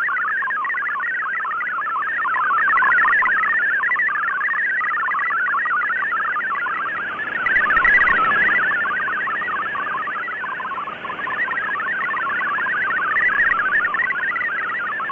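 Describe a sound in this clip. A shortwave radio plays a warbling digital data signal through hiss.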